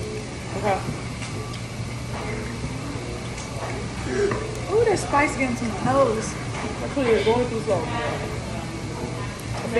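A young woman chews food noisily.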